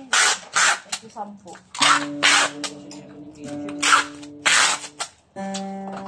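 Packing tape screeches off a roll.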